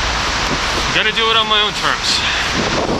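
A man speaks briefly and calmly, close by, his voice muffled.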